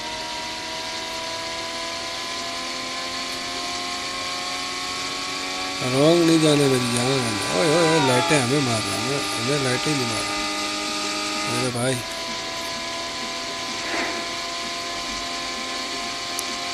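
A car engine drones steadily, its pitch slowly rising as it speeds up.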